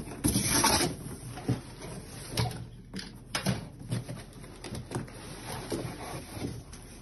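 Cardboard rustles and scrapes as a box is opened.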